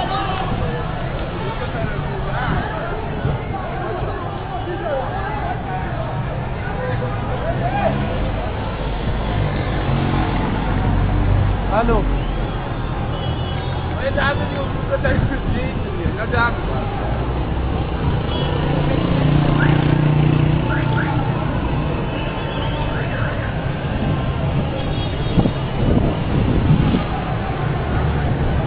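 A crowd murmurs and calls out in the distance.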